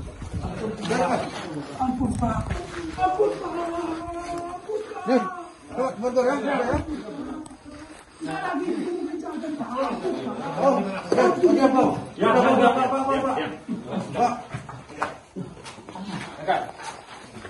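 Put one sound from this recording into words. Several men talk and call out to one another close by.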